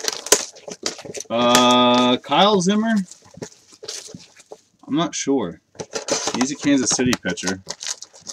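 A cardboard box rustles and scrapes as hands open it.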